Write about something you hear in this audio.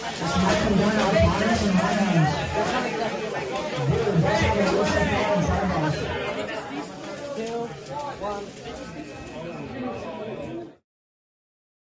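A crowd of young people and adults chatter and call out loudly in an echoing room.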